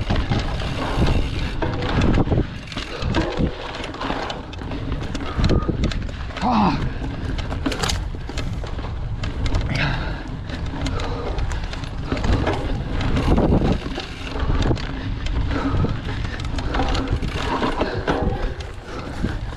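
A bicycle frame rattles and clatters over bumps.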